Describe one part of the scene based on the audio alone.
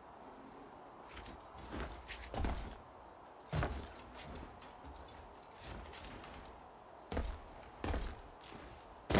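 Footsteps thump on wooden boards.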